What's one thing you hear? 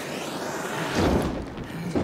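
Metal scrapes harshly against a concrete floor.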